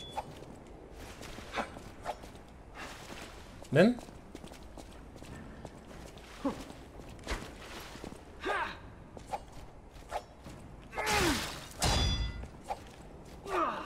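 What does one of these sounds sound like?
Swords clash and swish in a fight.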